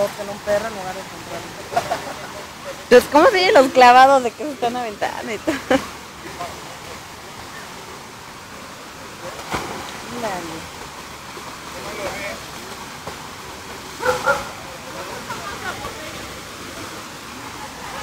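Dogs splash while swimming in water.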